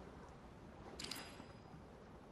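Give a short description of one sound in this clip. A bright chime rings out once.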